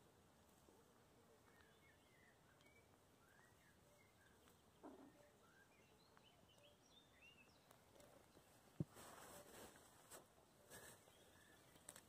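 Puppies whimper and squeak softly close by.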